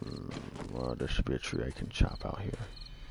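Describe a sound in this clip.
A heavy tool thuds against wood.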